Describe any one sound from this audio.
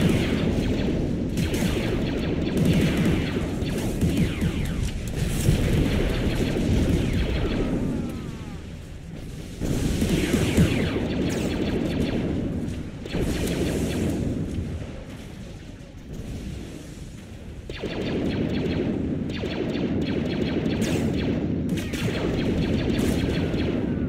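Laser guns fire in rapid bursts during a noisy battle.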